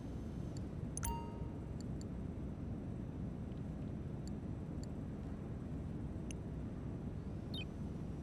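Short electronic clicks sound as menu options are chosen.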